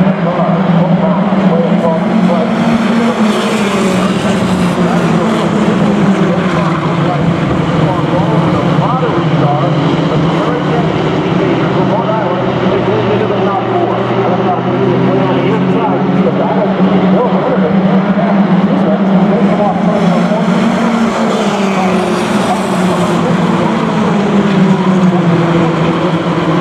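A pack of mini stock race cars roars around an oval track.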